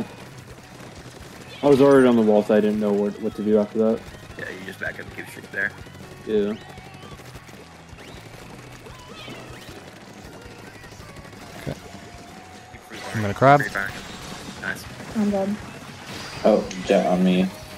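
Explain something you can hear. A toy-like paint gun fires wet, splattering bursts.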